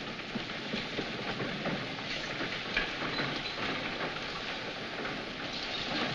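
Horse hooves clop on dirt.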